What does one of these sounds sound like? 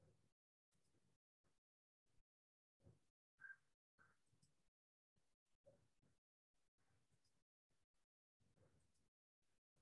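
A young woman speaks calmly over an online call, in short bursts with pauses.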